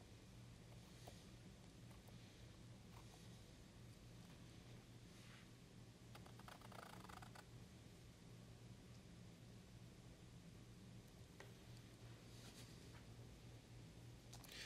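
A palette knife scrapes and dabs thick paint on canvas.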